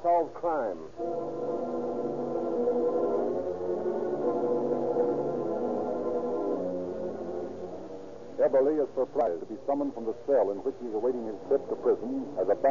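A man speaks into a microphone, heard through an old radio broadcast.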